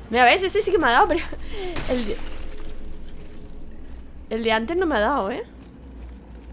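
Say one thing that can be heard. A young woman talks with animation close to a microphone, her voice rising and falling in sing-song bursts.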